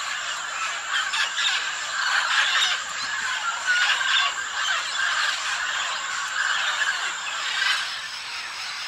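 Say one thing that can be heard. Parrots squawk and chatter close by.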